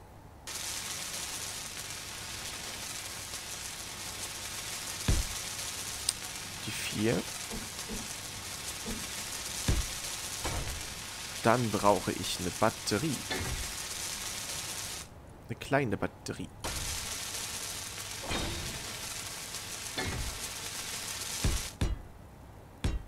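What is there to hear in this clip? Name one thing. A welding torch hisses and crackles steadily.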